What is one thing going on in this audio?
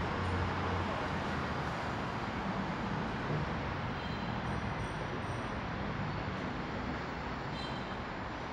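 Road traffic hums steadily nearby, outdoors.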